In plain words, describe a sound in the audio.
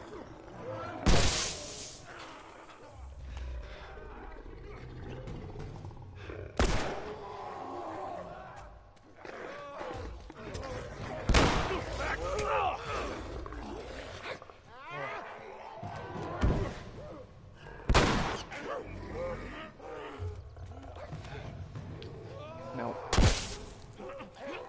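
Loud blasts boom and crackle in a large echoing hall.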